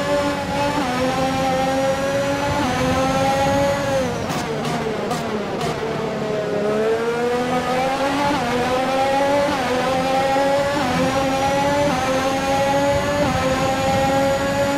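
Rain spray hisses under the tyres.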